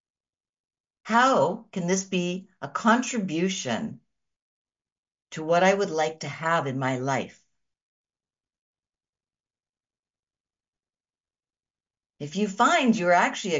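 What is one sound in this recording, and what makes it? A middle-aged woman speaks calmly and warmly into a microphone, in short phrases with pauses.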